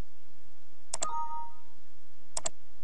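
A short computer chime sounds once.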